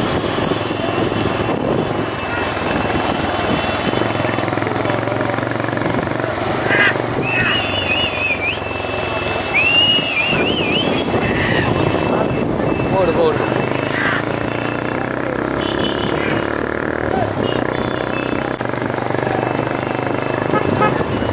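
Hooves of racing bullocks clatter on asphalt.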